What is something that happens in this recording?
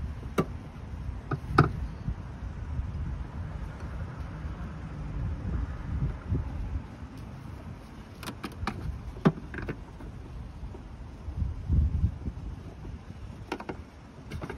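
Tools click and clink against metal engine parts.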